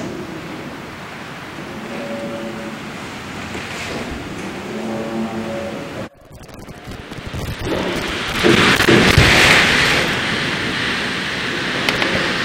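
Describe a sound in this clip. Water rushes and gurgles close by.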